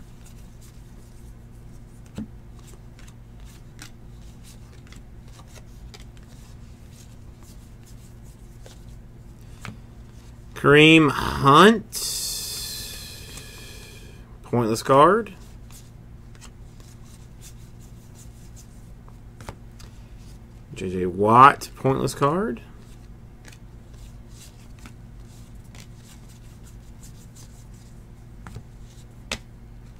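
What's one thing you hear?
Trading cards flick and rustle as they are shuffled through by hand.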